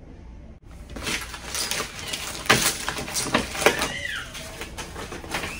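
Paper rustles as a young woman handles a package.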